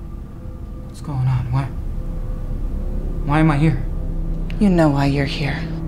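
A young woman speaks in a frightened, shaky voice close by.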